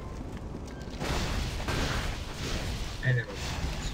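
Magic blasts whoosh and crackle in bursts.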